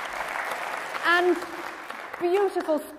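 A woman sings in a clear voice, echoing in a large hall.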